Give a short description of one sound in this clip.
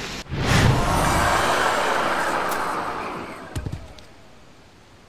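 An explosion booms and rumbles, then fades.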